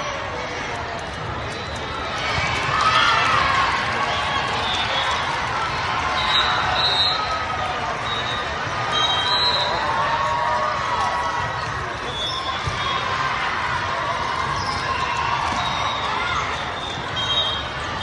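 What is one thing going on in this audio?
A volleyball is struck with sharp thumps.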